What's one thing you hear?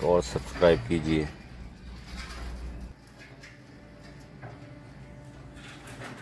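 An excavator bucket scrapes and digs into soil.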